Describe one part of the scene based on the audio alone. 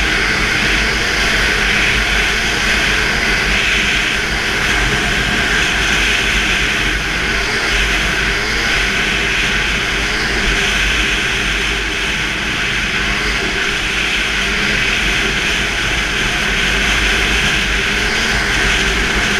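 A snowmobile engine roars steadily up close.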